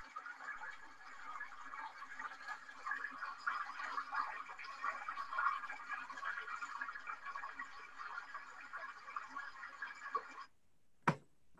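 A small stream babbles and trickles steadily nearby.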